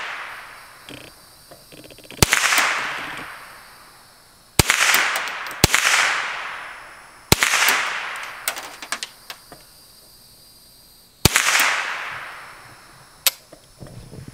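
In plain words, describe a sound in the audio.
A rifle bolt clicks and clacks between shots.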